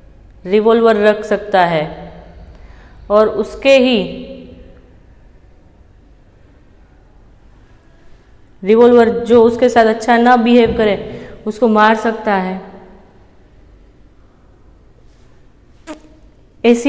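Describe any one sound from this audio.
A young woman speaks clearly and calmly close to a microphone, with pauses between phrases.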